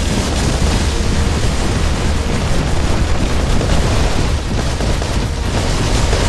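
A giant robot stomps heavily with deep, rumbling footsteps.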